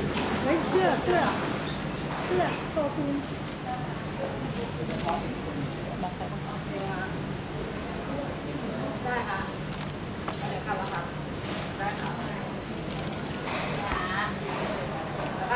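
A young woman talks calmly on a phone nearby.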